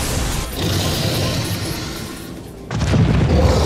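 A monstrous creature roars loudly.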